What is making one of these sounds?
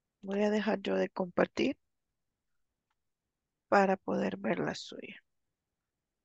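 A woman speaks calmly over an online call, in two short bursts.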